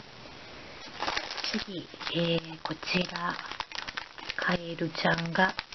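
A plastic bag crinkles in hands.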